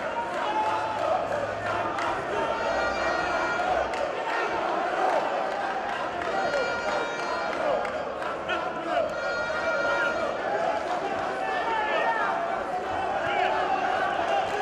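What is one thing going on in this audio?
A large crowd cheers and shouts throughout, echoing in a big hall.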